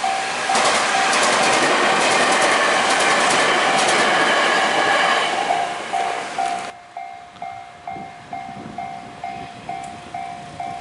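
A railway crossing bell rings steadily over and over.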